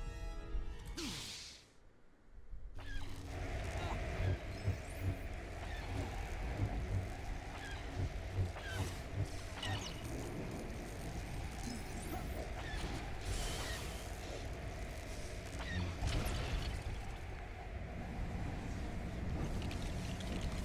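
A lightsaber hums and swings with whooshing sweeps.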